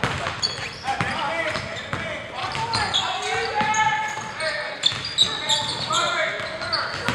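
A basketball bounces on a hard court in a large echoing gym.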